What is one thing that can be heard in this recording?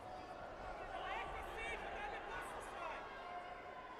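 Bare feet squeak on a mat.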